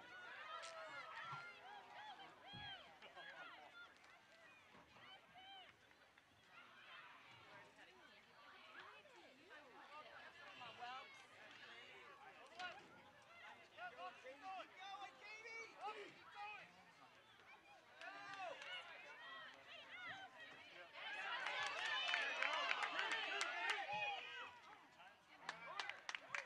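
Young women shout and call to each other across an open field.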